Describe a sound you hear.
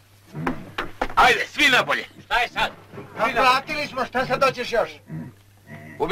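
Another man protests back with animation.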